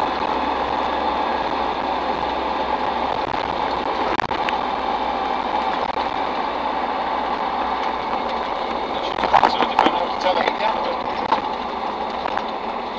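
An old vehicle's engine drones steadily from inside the cab while driving.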